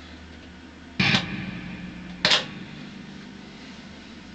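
An electric guitar rings out with a few loud strummed chords.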